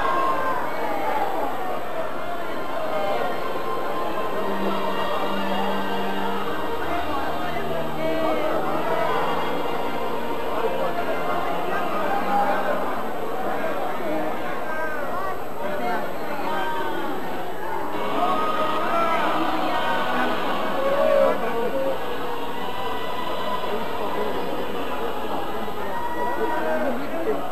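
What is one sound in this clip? A crowd of men and women pray aloud together, many voices overlapping.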